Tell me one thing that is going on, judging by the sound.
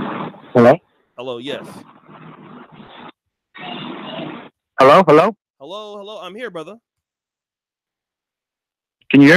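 A man speaks calmly and closely into a microphone.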